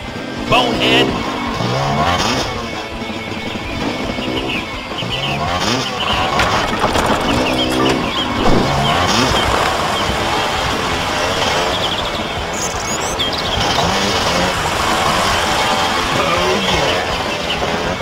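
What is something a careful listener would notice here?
A motorbike engine revs up and down repeatedly.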